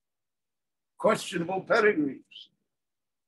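An elderly man speaks briefly and calmly, close to the microphone.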